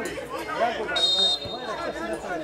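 A referee's whistle blows briefly outdoors.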